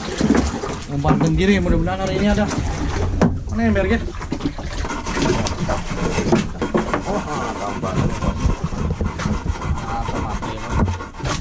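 Men talk casually close by, outdoors.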